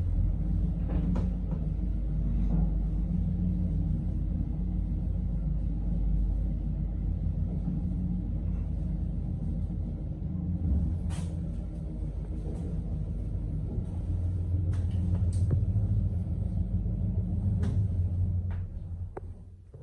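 An elevator car hums and rumbles as it travels through its shaft.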